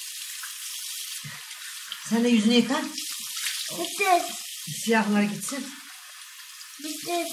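Water runs steadily from a tap into a basin.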